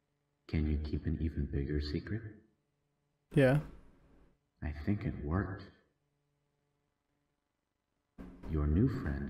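A young man speaks close into a microphone, in short bursts with pauses.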